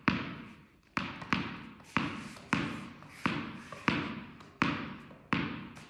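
A tennis racket taps a ball up and down.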